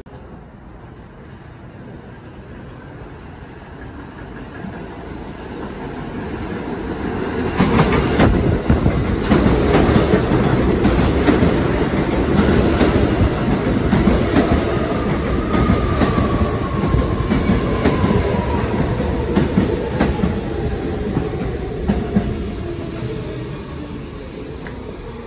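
A subway train approaches and roars past close by.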